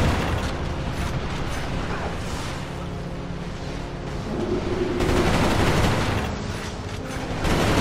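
A weapon is reloaded with metallic clicks.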